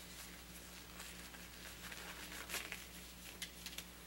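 A rubber glove is pulled on with a stretch and snap.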